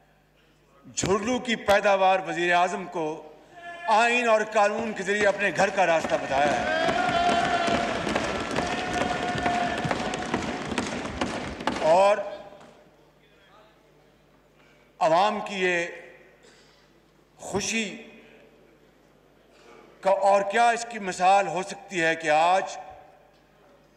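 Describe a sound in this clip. An elderly man speaks firmly into a microphone in a large echoing hall.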